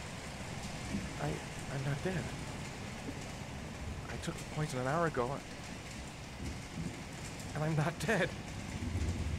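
A young man speaks weakly and strained, close by.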